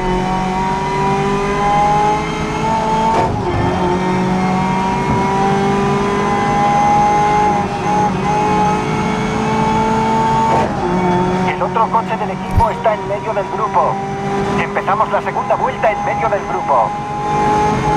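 A race car engine roars steadily, its pitch climbing and dropping briefly as the car shifts up through the gears.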